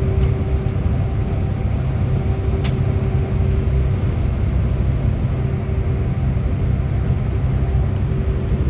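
A bus engine rumbles steadily while driving through an echoing tunnel.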